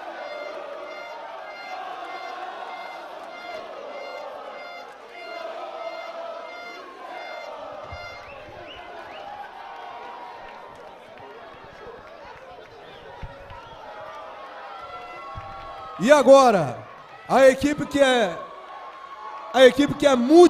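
A crowd of young men cheers and chants together outdoors.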